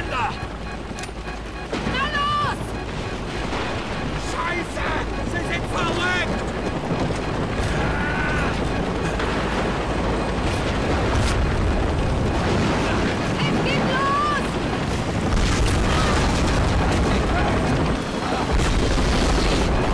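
Wind and rain roar steadily.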